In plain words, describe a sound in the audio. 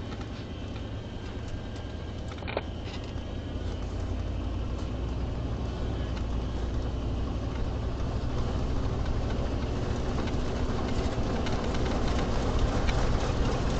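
A car engine hums steadily from inside, growing louder as the car speeds up.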